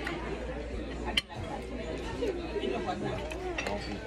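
A fork scrapes a plate.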